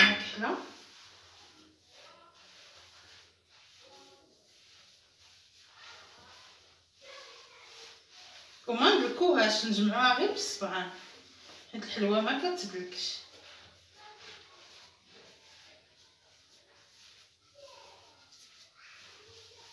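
Hands knead and rub dough in an earthenware bowl.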